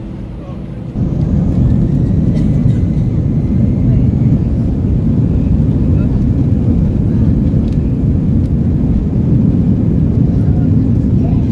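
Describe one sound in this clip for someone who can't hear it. Jet engines roar loudly as an airliner speeds along a runway.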